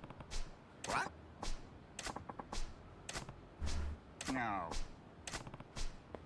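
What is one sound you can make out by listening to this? A middle-aged man exclaims with animation.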